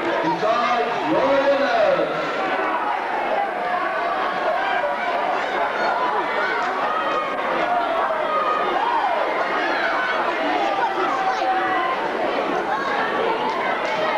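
A crowd chatters and shouts throughout a large echoing hall.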